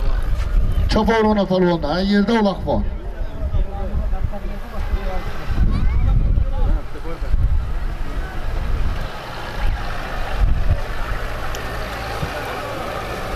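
A crowd of men talks and shouts close by outdoors.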